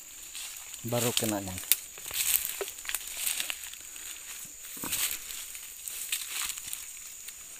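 Dry leaves and twigs rustle and crunch underfoot.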